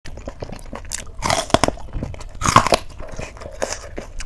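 A woman crunches loudly on crisp fried food close to a microphone.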